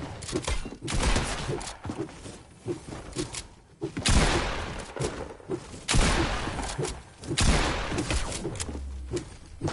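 A pickaxe strikes wood with sharp thuds.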